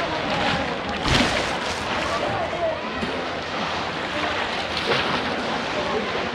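Water splashes as a man wades and lifts a basket trap.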